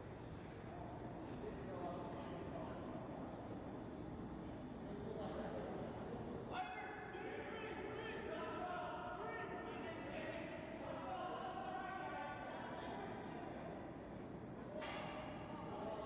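A man calls out loudly across the rink.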